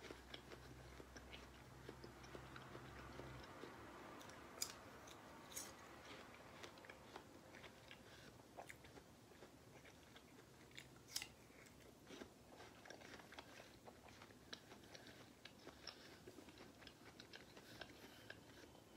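A woman bites and chews juicy fruit close to a microphone, with wet crunching and smacking sounds.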